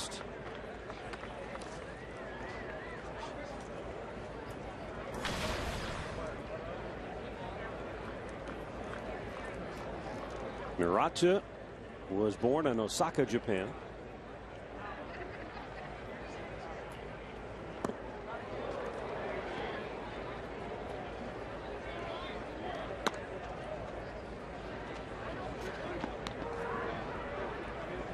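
A crowd murmurs steadily outdoors.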